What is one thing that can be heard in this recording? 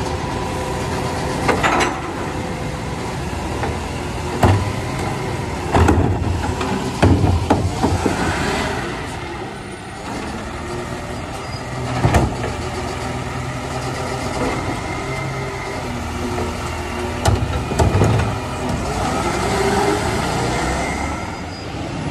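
A truck's hydraulic arm whines as it lifts and tips a bin.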